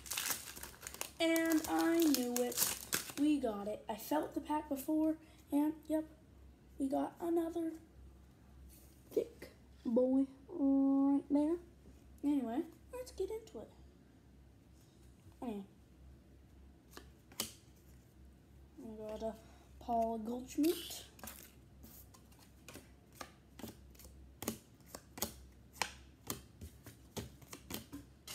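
Playing cards click and riffle in a boy's hands.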